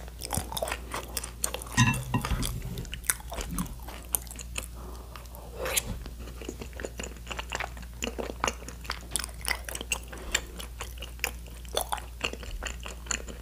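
A young woman chews food wetly and crunchily close to a microphone.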